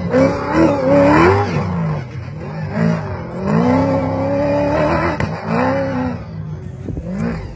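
A rally car engine revs in the distance.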